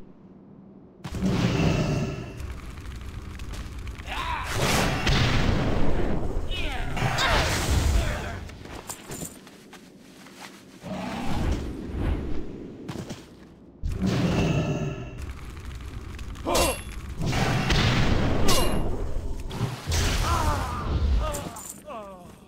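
Magic spells crackle and burst during a fight.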